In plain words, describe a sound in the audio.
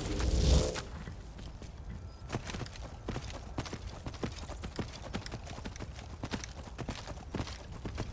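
Horse hooves clop steadily on stony ground.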